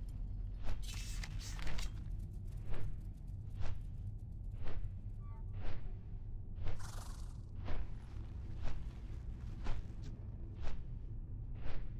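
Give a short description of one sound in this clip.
Large wings flap in a slow, steady rhythm.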